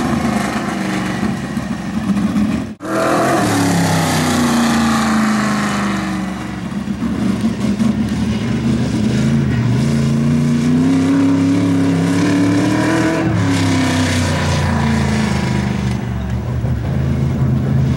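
A race car engine roars loudly, its pitch rising and falling as it revs.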